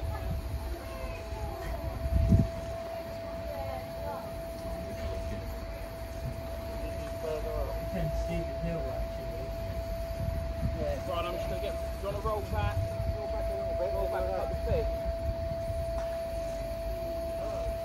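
A steam locomotive idles with a steady hum.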